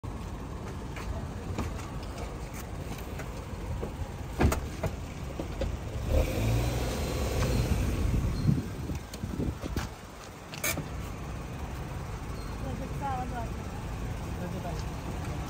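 A car engine hums at a low idle.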